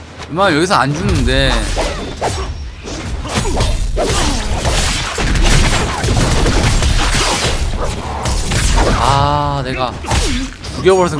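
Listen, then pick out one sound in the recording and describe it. Game combat sounds clash and thud with loud effects.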